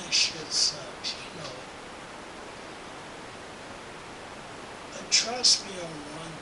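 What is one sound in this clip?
A young man whispers close to the microphone.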